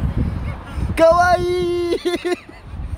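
A young woman laughs and squeals close by.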